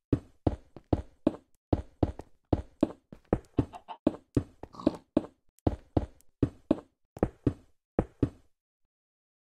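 Footsteps tap quickly and evenly on stone, then stop.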